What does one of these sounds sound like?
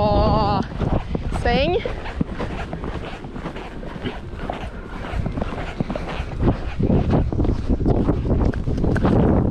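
A horse's hooves thud rhythmically on soft sand.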